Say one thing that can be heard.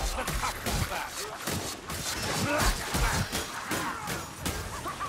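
Monstrous creatures snarl and shriek.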